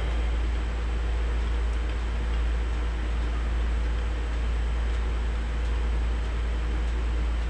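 Water sloshes gently as a hand stirs it in a metal pot.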